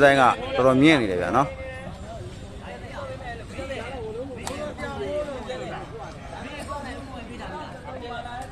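A crowd of spectators chatters and calls out in the distance.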